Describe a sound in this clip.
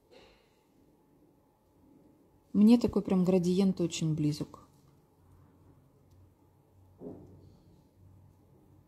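A small brush strokes softly across a fingernail.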